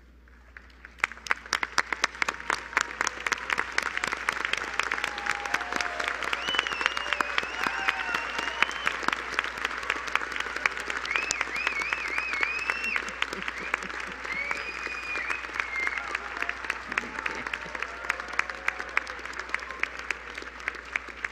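A large crowd applauds loudly.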